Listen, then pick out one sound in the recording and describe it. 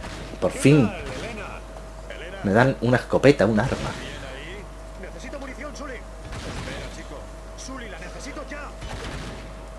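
Gunshots crack several times.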